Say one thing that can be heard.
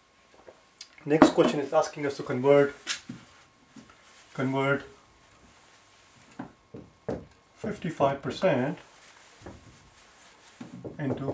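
A man speaks calmly and clearly, close by, explaining.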